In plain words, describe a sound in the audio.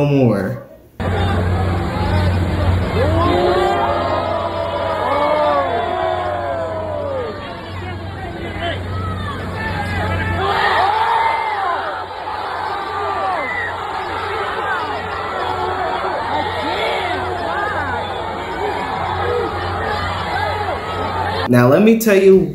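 Men shout and argue at a distance.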